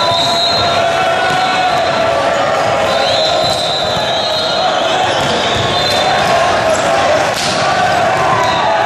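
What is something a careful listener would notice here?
A crowd of spectators chatters loudly in a large echoing hall.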